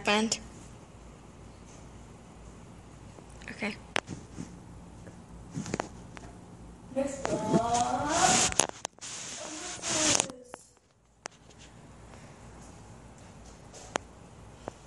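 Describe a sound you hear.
A television plays quietly in the background.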